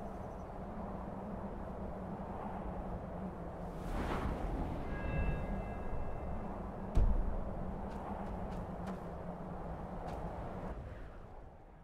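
Wind howls in a strong blizzard.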